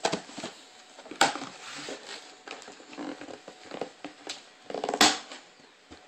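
A blade slits packing tape on a cardboard box.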